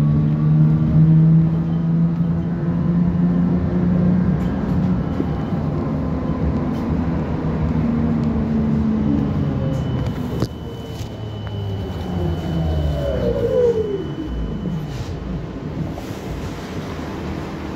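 Tram wheels rumble steadily on the rails.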